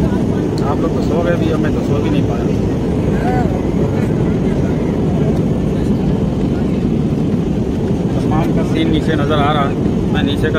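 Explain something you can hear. A man talks close to the microphone.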